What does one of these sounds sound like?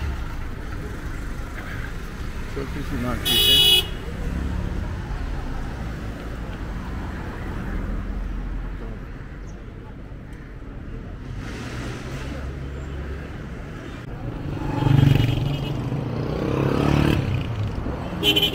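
Car engines hum as cars drive slowly past on a street.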